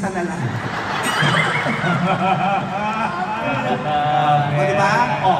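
A crowd of young people laughs and chatters.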